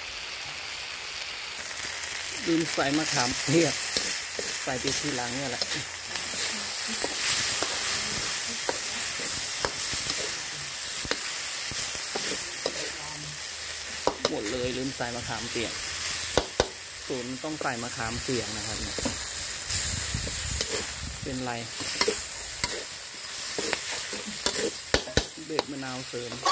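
Food sizzles steadily in a hot wok.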